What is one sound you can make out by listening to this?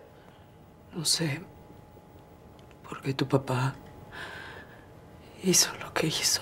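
A young woman speaks quietly nearby.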